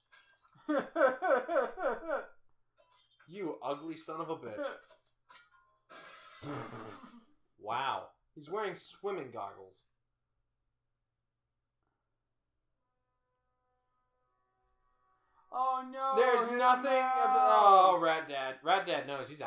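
A young man speaks close by, with animation.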